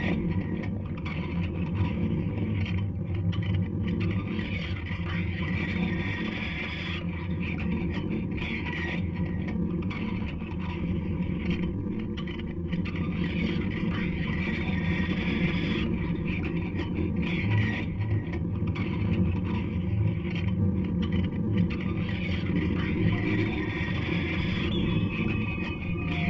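Electronic music plays steadily through loudspeakers.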